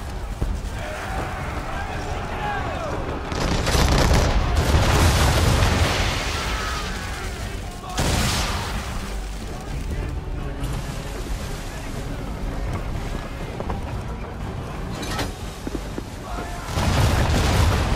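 Waves rush and splash against a ship's hull.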